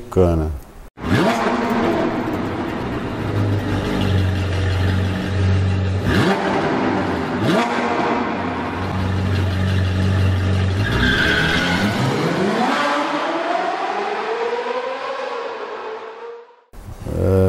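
A car engine hums steadily, then revs up and fades.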